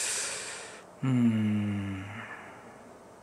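A man hums a long thoughtful note close to a microphone.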